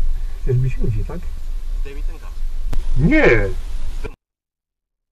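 A young man speaks angrily nearby.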